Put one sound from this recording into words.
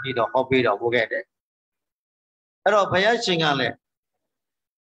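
An elderly man speaks calmly into a microphone, heard through an online call.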